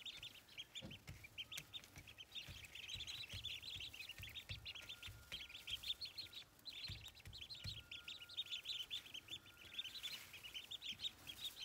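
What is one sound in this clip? Many ducklings peep rapidly and continuously, close by.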